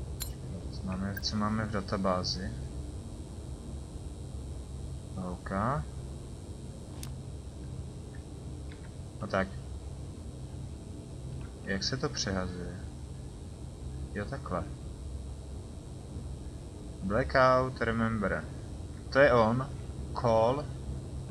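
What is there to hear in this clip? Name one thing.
A man talks into a close microphone in short, calm bursts.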